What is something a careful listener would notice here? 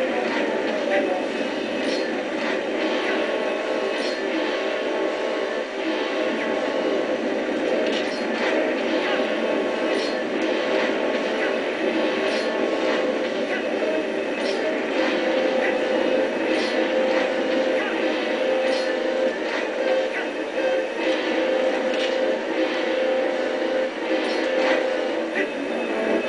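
Game music plays steadily with a busy, dense sound.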